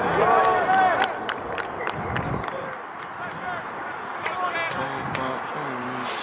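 Spectators shout and cheer nearby outdoors.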